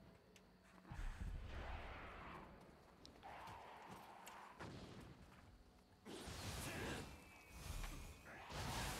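A sword swishes and clangs in quick slashes.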